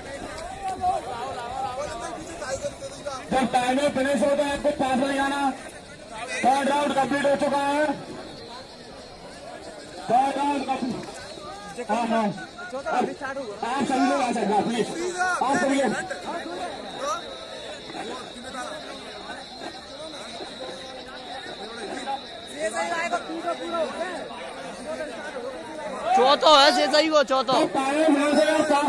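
A crowd of young men chatters and calls out outdoors.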